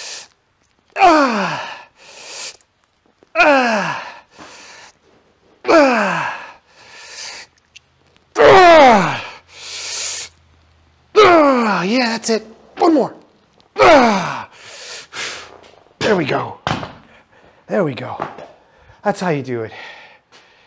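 A middle-aged man groans loudly with effort, his voice sliding down in pitch.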